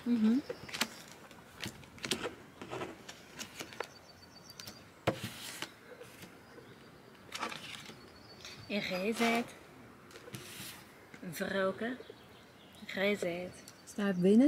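Playing cards slap and shuffle on a table.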